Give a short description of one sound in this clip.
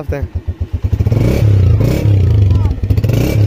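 A motorcycle engine revs loudly.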